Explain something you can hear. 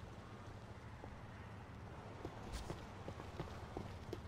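Footsteps run quickly across pavement.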